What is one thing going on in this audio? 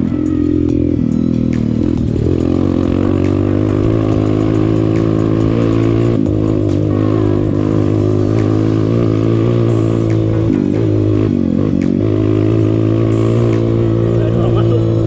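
A motorcycle engine hums steadily and rises and falls as it rides.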